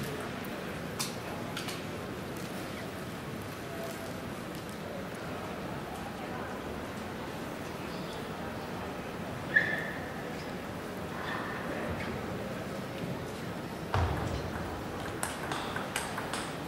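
A table tennis ball clicks sharply against paddles and the table.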